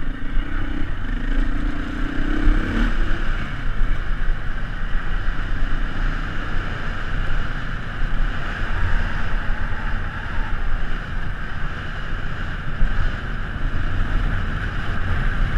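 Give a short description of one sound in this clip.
A motorbike engine drones steadily.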